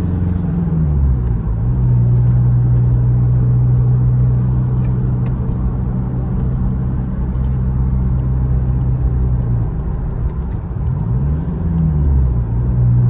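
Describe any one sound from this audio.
A car engine hums steadily from inside the car, shifting pitch now and then.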